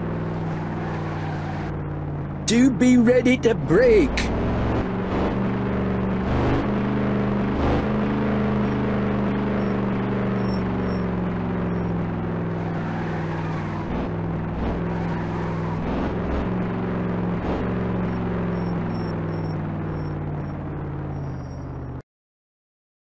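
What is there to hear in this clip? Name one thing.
A car engine hums steadily, rising and falling slightly in pitch.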